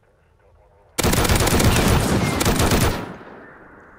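A machine gun fires a long rapid burst.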